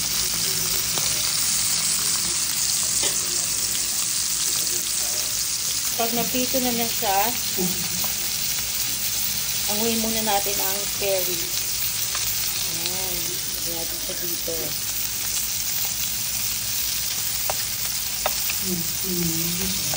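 Metal tongs click and tap against a frying pan.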